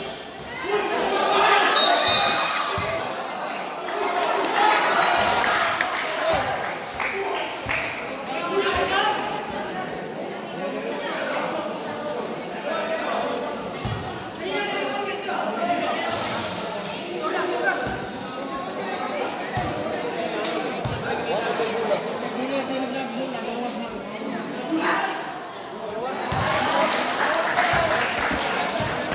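A large crowd cheers and chatters in an echoing hall.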